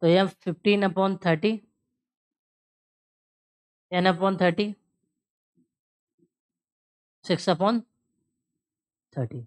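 A man explains calmly into a close microphone, in short bursts with pauses.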